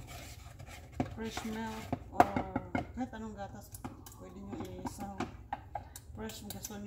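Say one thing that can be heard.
A fork clinks against a plastic bowl while beating eggs.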